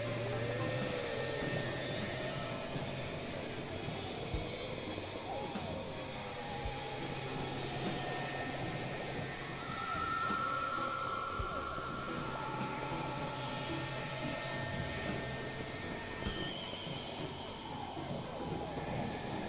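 A synthesizer plays warbling, gliding electronic tones.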